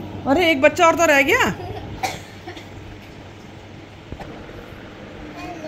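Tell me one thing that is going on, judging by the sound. A young girl speaks up close in a high, lively voice.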